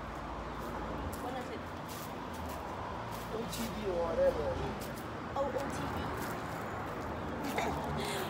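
Shoes step and scuff on concrete outdoors.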